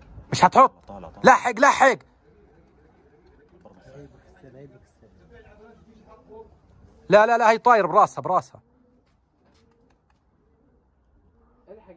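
A flock of pigeons flaps its wings in flight overhead.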